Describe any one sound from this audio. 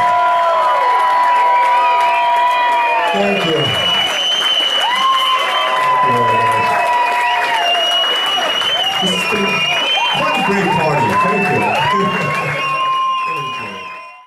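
A live band plays loudly.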